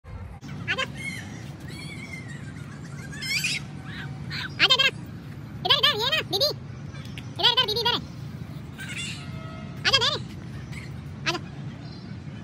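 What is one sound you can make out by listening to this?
A toddler squeals and shrieks playfully nearby.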